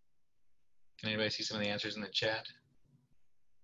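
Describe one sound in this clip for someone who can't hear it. A man speaks briefly and calmly over an online call.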